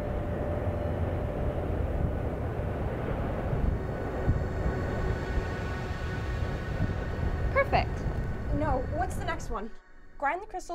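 A volcano erupts with a deep, roaring rumble.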